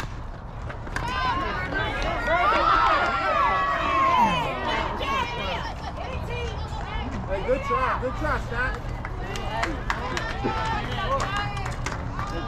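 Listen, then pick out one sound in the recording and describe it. Young women shout and cheer outdoors.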